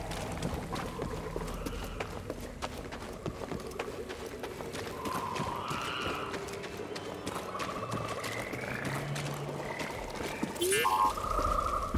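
Quick footsteps run over soft ground.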